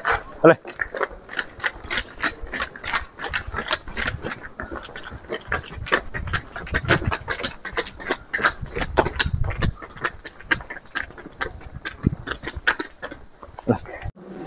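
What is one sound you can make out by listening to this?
Hooves clop on a hard path.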